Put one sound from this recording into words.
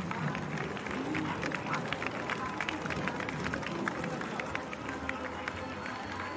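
A crowd of spectators claps loudly.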